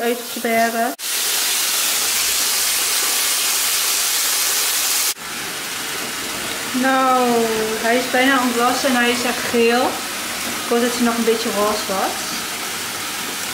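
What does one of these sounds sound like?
A bath bomb fizzes and hisses in water.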